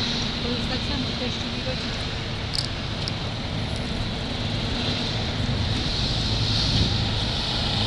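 A bus engine rumbles as the bus pulls up close by.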